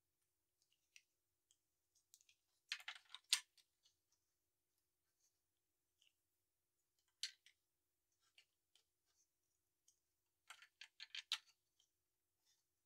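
Plastic toy bricks click and clatter as they are pressed together and pulled apart.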